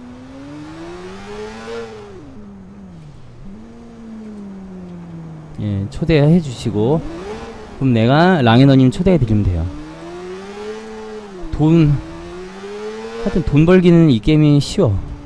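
A motorcycle engine hums and revs up and down as it speeds along.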